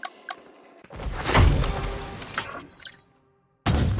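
A short victory tune plays.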